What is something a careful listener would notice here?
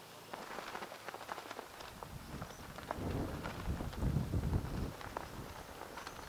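Flags flap in the wind.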